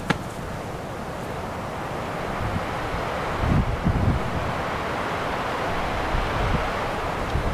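Wind blows steadily across open ground outdoors.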